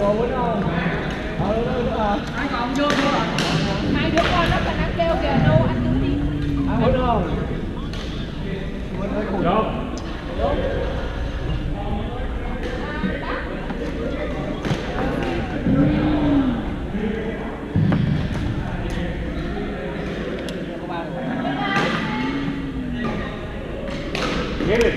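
Paddles knock a ball back and forth with sharp taps.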